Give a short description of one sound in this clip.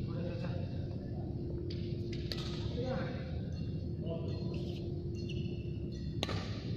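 A badminton racket smashes a shuttlecock in a large echoing hall.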